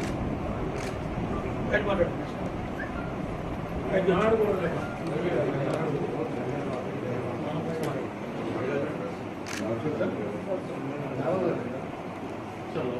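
Several men talk over each other nearby.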